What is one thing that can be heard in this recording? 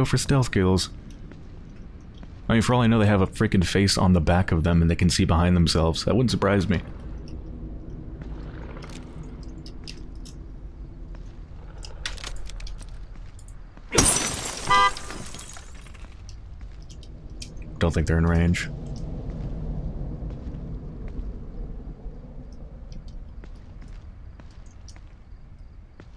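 Footsteps shuffle slowly on wet pavement.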